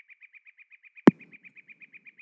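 A golf ball lands with a thud.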